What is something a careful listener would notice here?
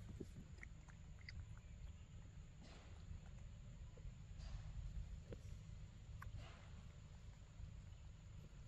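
A monkey bites and chews soft fruit close by.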